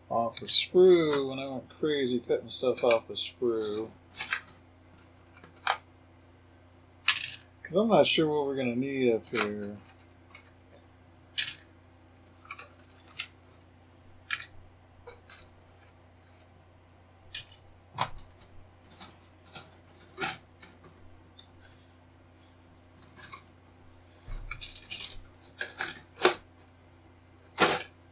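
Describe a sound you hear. Plastic model parts click and tap on a cutting mat.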